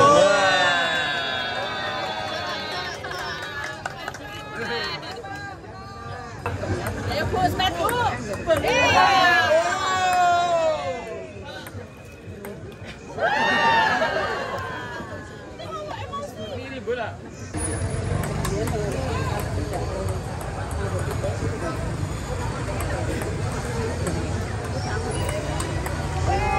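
A table tennis ball clicks against paddles and the table.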